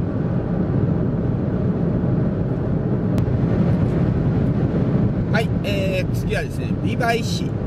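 A car's engine and tyres rumble steadily, heard from inside.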